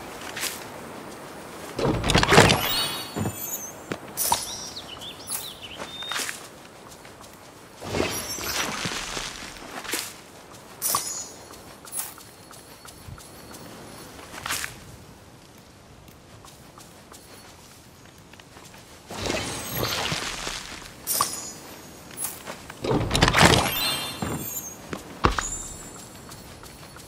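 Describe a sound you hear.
Chiming game sound effects ring out as items are collected.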